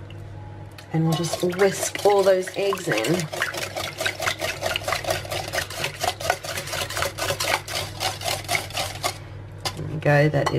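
A wire whisk beats eggs quickly against a glass bowl, clicking fast.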